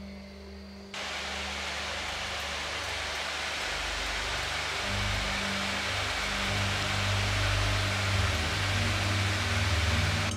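Hot oil sizzles and crackles loudly.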